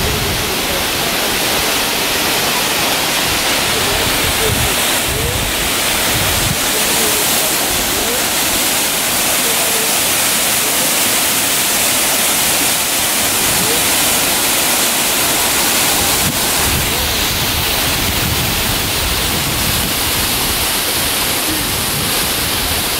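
A waterfall rushes and splashes steadily onto rocks.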